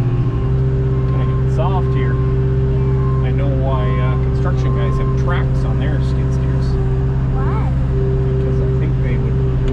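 A man talks calmly close by over the engine noise.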